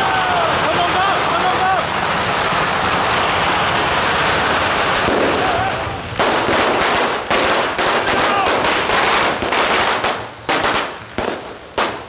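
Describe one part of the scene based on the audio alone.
A crowd murmurs and calls out outdoors.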